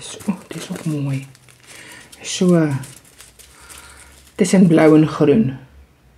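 A small plastic bag of beads crinkles.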